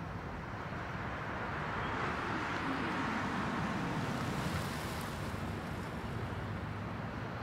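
A car drives up slowly and stops.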